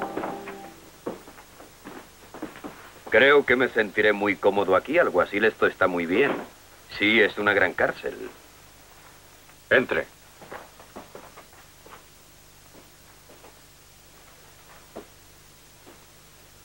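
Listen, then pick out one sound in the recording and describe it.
Boots thud on a wooden floor as men walk.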